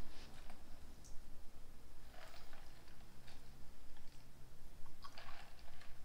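Liquid trickles into small glasses.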